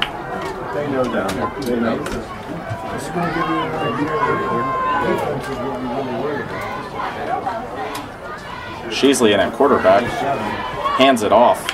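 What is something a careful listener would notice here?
Football players' pads clash as they collide.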